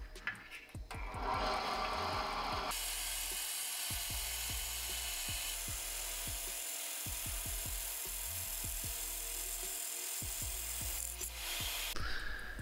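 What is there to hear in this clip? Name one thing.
A band saw motor runs with a steady hum.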